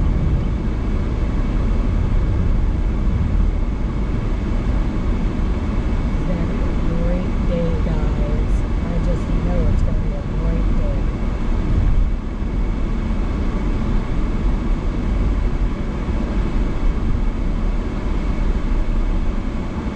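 Tyres roll steadily over the road.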